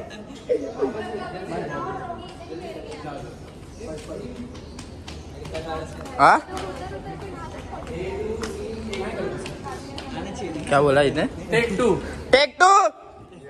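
Young men and women chat in an echoing hall.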